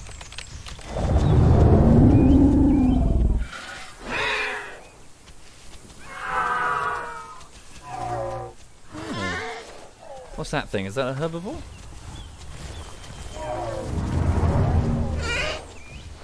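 Dinosaur-like creatures call out with chirps, growls and roars.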